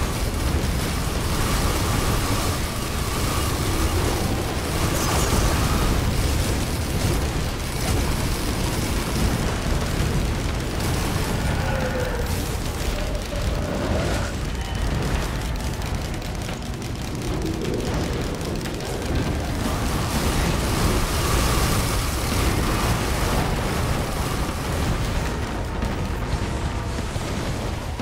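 Rapid gunfire and explosions crackle and boom without a break.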